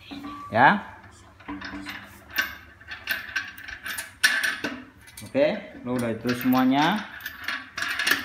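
Metal clinks and scrapes as a lid's clamps are handled and tightened.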